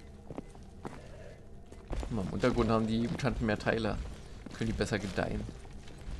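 Footsteps scuff on a concrete floor.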